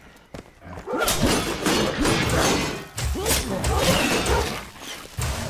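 Weapons clash and swing in a fight.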